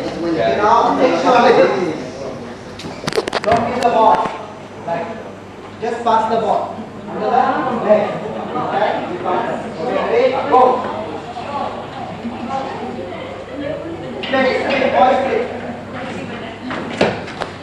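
A man calls out instructions loudly in an echoing hall.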